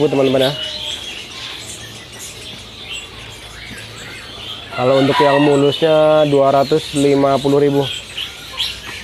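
Caged songbirds chirp and whistle nearby.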